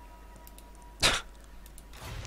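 A soft interface click sounds once.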